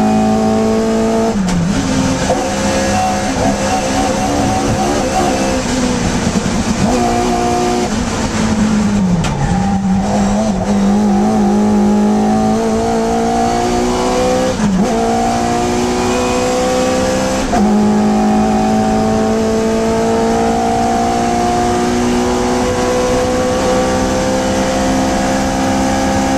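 A small four-cylinder race car engine roars at full throttle from inside the car.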